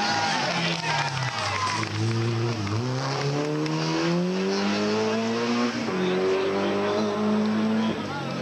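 A rally car engine revs hard, rising in pitch and dropping sharply with each gear change.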